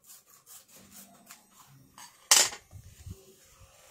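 A foam sheet scrapes softly across a plastic mat.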